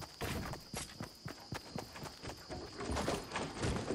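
Wooden planks knock into place.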